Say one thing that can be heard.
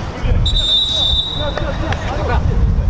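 A referee's whistle blows a long, sharp blast.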